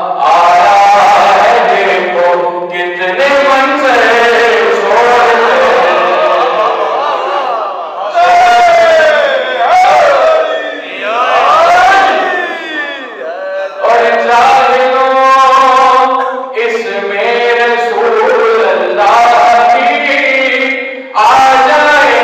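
A young man chants in a melodic, mournful voice through a microphone and loudspeakers, in an echoing room.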